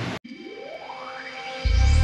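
Metal parts clink on a table.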